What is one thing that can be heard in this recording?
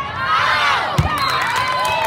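A volleyball thuds off a player's forearms.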